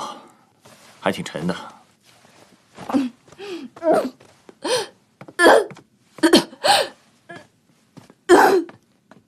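A young woman groans and pants with effort, close by.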